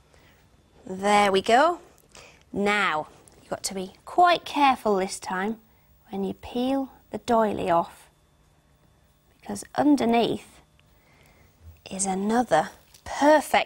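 A young woman speaks cheerfully and clearly, close by.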